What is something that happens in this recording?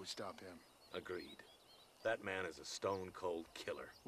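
An older man answers calmly, close by.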